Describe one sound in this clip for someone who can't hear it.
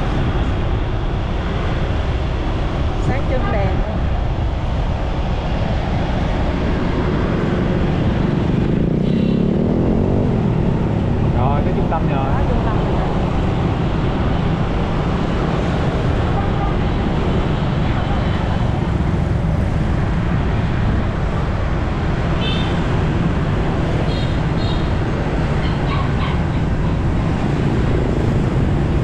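A motorbike engine hums steadily while riding.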